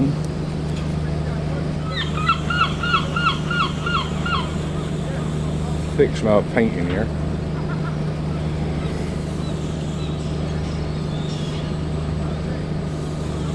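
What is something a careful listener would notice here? A boat engine idles with a low, steady hum.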